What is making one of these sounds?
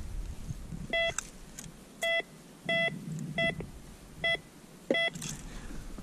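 A metal detector beeps in short, repeated tones.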